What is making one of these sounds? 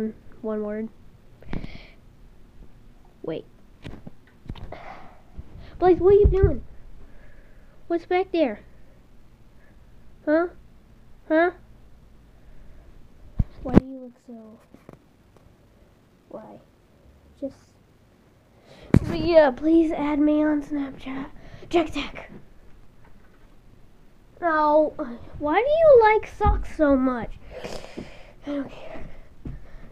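A young boy speaks and sings playfully, close by.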